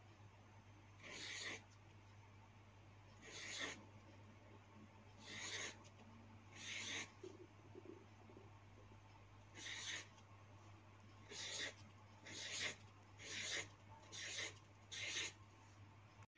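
A marker squeaks on paper in short strokes.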